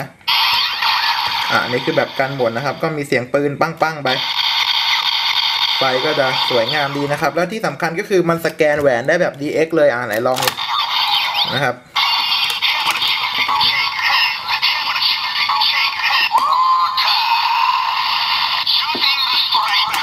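An electronic toy plays tinny sound effects and music through a small speaker.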